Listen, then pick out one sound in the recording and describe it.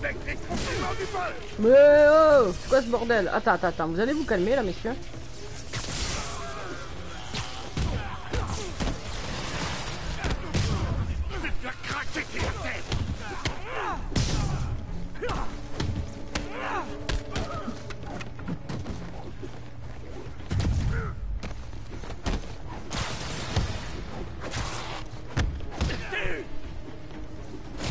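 Punches and blows thud in a video game fight.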